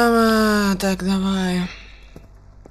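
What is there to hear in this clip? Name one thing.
A young boy speaks loudly and drawn out, close to a microphone.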